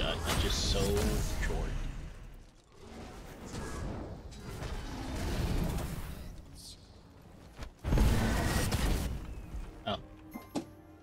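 Magic blasts burst and crackle in a fight.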